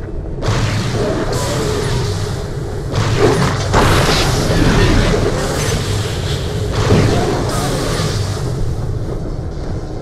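An electric beam weapon crackles and hisses in long bursts.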